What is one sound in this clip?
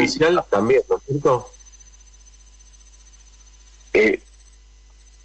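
A man speaks into a close microphone in short bursts.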